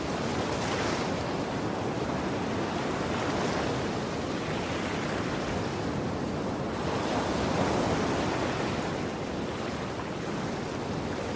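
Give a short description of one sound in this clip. Water rushes and splashes steadily around a moving boat.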